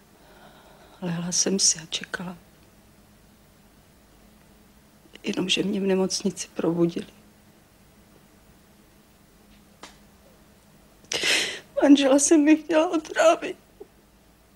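A middle-aged woman speaks tearfully, close by.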